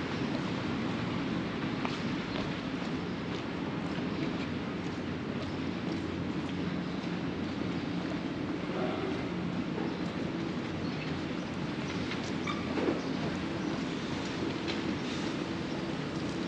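A heavy truck engine idles with a low, steady rumble close by.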